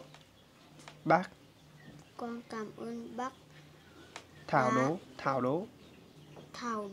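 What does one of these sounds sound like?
A young boy speaks close by in short, hesitant bursts.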